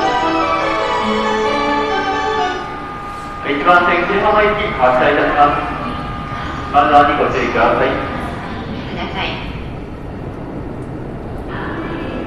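A train idles with a low steady hum.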